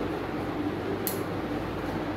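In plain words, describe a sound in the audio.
A comb rustles through long hair.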